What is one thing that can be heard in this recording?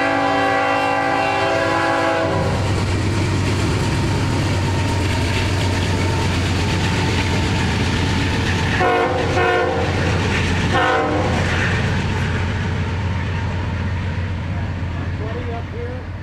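Train wheels clatter along the rails.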